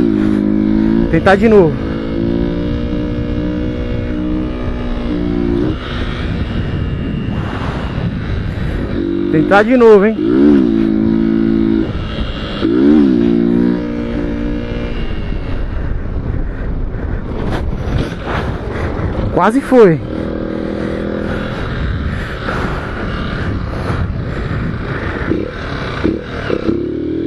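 Wind rushes past the microphone while riding.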